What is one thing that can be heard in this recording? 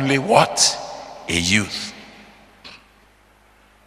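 A man speaks with animation into a microphone in a reverberant hall.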